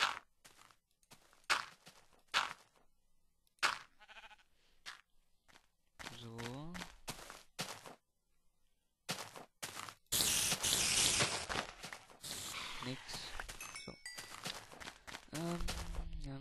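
Footsteps crunch on grass and stone.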